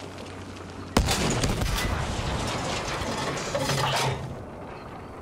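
An explosion bursts nearby with debris clattering.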